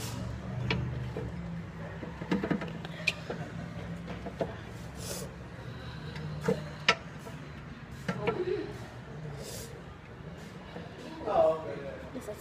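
A metal tool clicks and taps against metal.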